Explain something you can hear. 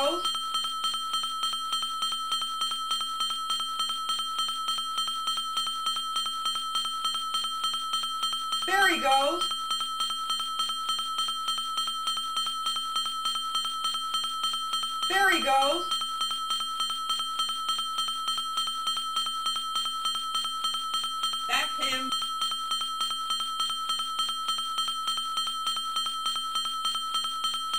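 Steady looping electronic game music plays throughout.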